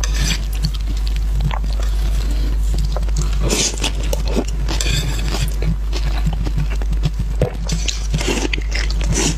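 Chopsticks clink against a metal plate.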